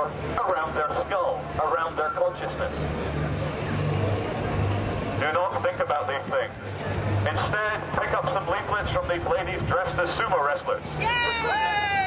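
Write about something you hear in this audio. A woman talks with a man close by.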